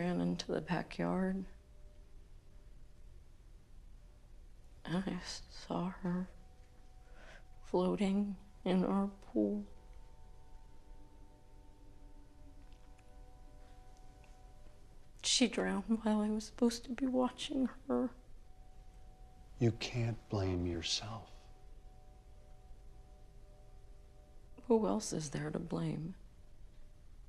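A woman speaks quietly and sadly, close by.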